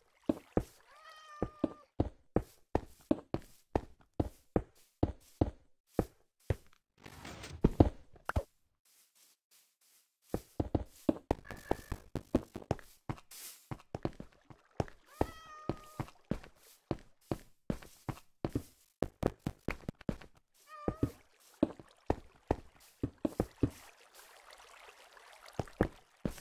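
Footsteps tap quickly and steadily on stone.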